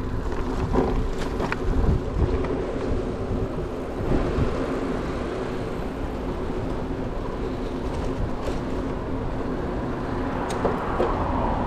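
Wind rushes past loudly outdoors.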